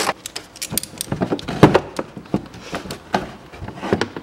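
A ratchet wrench clicks in quick bursts.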